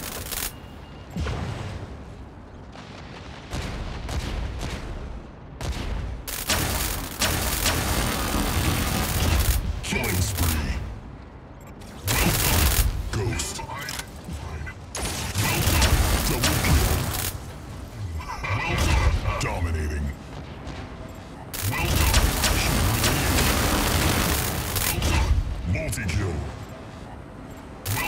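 Game weapons fire in rapid bursts.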